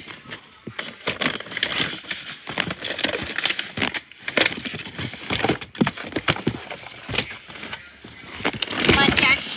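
Plastic boxes and packaging rustle and knock as they are moved.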